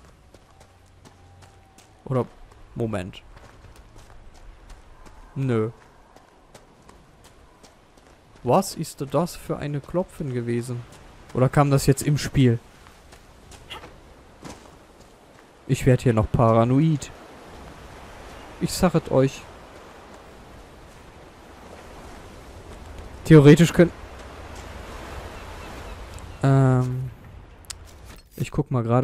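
Footsteps crunch on loose stones.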